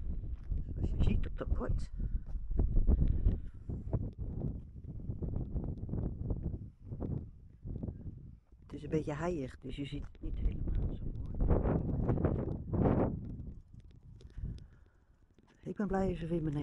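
Wind blows and rumbles across open ground outdoors.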